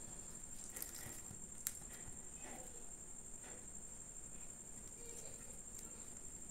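Flatbread tears and crackles close by.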